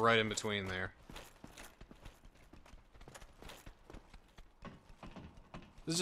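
Armoured footsteps clank on wooden steps.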